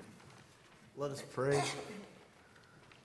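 A man speaks briefly through a microphone in a large, echoing hall.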